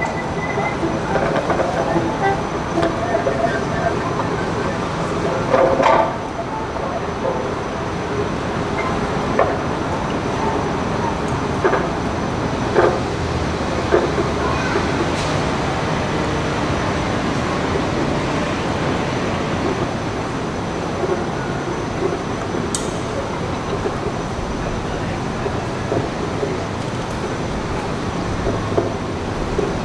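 A violin plays a melody outdoors.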